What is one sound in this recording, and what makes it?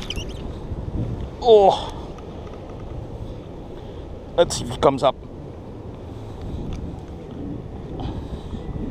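Clothing rubs and rustles against the microphone.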